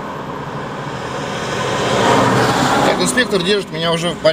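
A large truck roars past close by.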